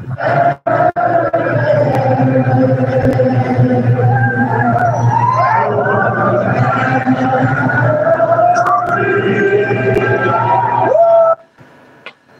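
A man sings loudly close to the microphone.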